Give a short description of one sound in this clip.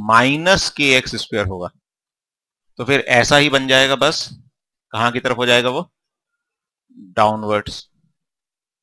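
A man speaks calmly through a headset microphone, in short phrases with pauses.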